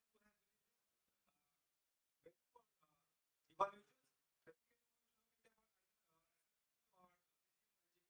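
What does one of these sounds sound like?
A man lectures through a microphone in short bursts with pauses.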